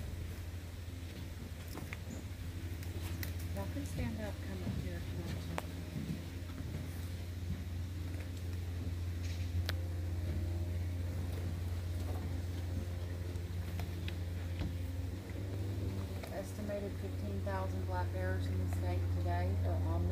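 A bear rustles through dry leaves nearby.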